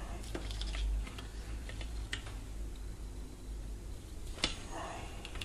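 Small metal parts click and tap as hands handle them.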